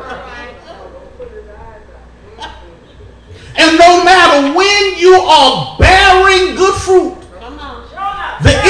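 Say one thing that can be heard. A man preaches loudly and with passion through a microphone, in a room with some echo.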